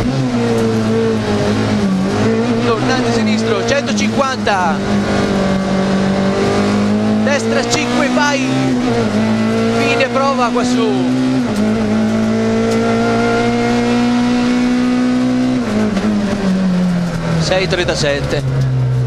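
Gravel and stones rattle against the underside of the car.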